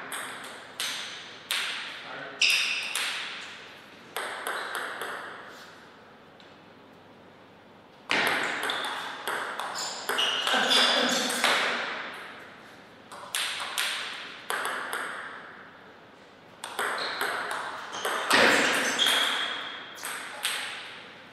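A ping-pong ball bounces on a table and clicks off paddles in quick rallies, echoing in a large hall.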